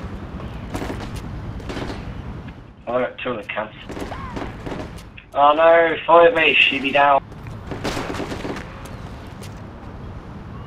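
Footsteps tread on hard ground.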